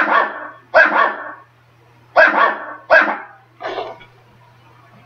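Loud game sound effects burst from a television speaker several times, then stop.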